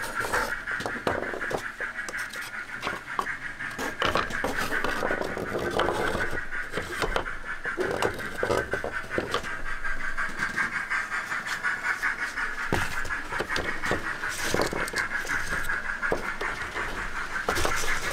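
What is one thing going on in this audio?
Small plastic and card pieces tap and click as hands set them in place.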